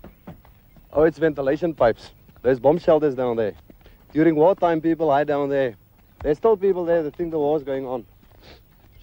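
A second man answers in a calm voice.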